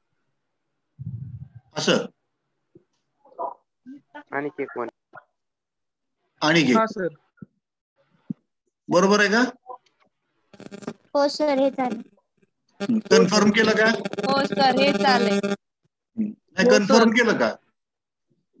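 A man explains calmly, heard close through a microphone on an online call.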